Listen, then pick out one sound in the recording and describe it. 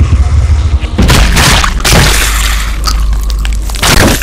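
Footsteps rustle through leafy plants.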